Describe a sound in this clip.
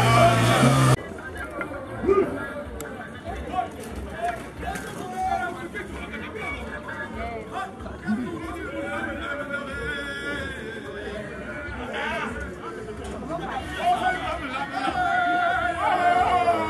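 Men call out faintly in the distance.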